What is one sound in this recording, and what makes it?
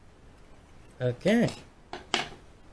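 Metal picks clatter and ring onto a hard table.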